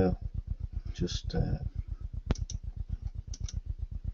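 A man speaks calmly into a computer microphone.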